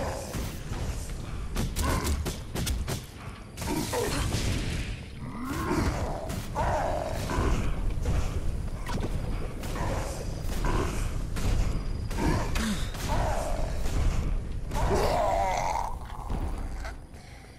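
Magic blasts and weapon blows crash in quick succession during a fight.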